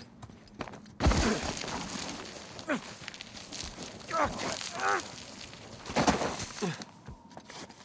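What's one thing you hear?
Footsteps crunch and scrape on loose gravel.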